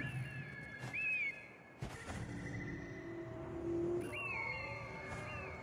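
An eagle screeches.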